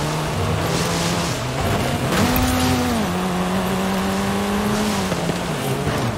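A car engine hums steadily, its pitch rising and falling with gear changes.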